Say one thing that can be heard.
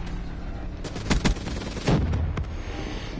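A rifle fires a short, loud burst of shots.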